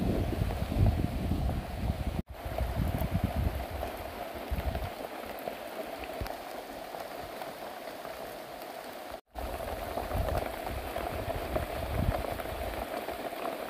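Rain falls steadily on leaves and foliage outdoors.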